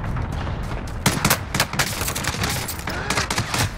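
Rapid gunshots ring out in quick bursts.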